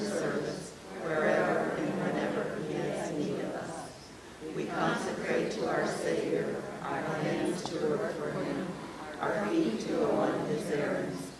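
A man reads aloud steadily in a calm voice, heard in a room with some echo.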